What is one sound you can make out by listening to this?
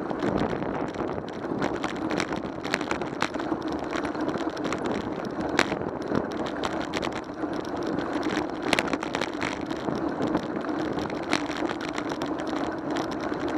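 Wind rushes steadily past, as when riding a bike outdoors.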